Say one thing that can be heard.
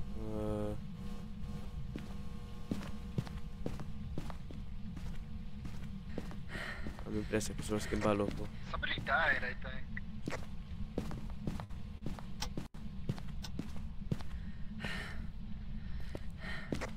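Footsteps thud steadily across a wooden floor.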